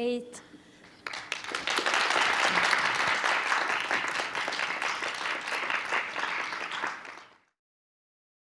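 An audience applauds and cheers.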